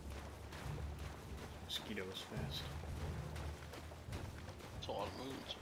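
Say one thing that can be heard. Footsteps splash quickly through shallow water.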